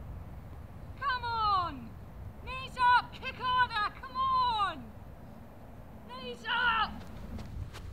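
Young women shout to each other.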